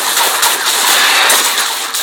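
Video game spell effects whoosh and clash during a fight.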